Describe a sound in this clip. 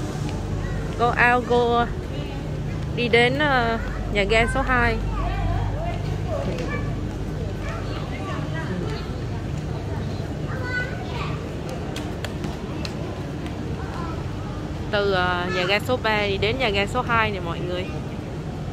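A young child speaks loudly and excitedly nearby.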